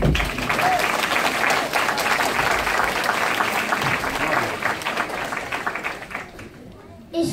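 An audience in a hall murmurs and chatters.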